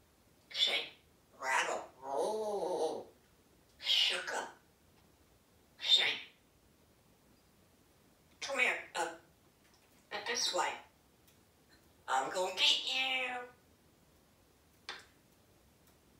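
A parrot chatters and mimics speech in short bursts, with quiet pauses between.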